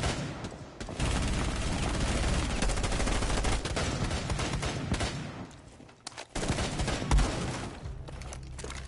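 A wooden wall splinters and breaks apart with loud cracking.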